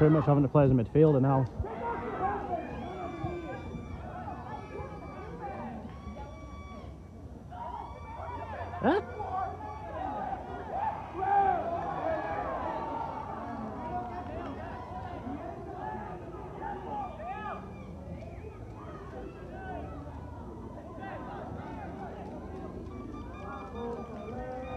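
Men shout and call to each other across an open field.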